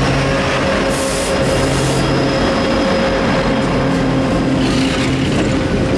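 Train wheels clatter and squeal on the rails.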